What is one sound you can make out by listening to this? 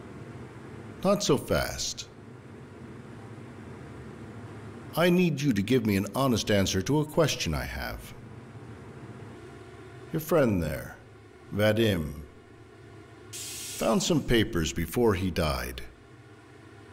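An older man speaks quietly and tensely, close by.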